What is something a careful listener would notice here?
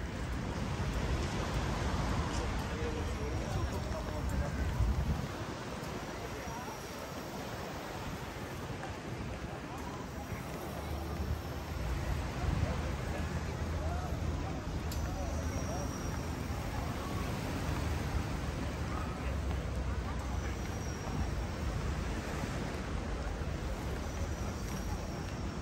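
Wind blows and rumbles outdoors.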